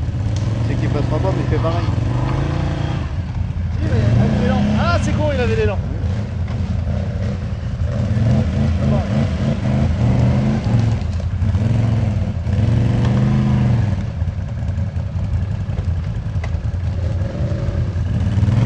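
A quad bike engine revs as it climbs through mud.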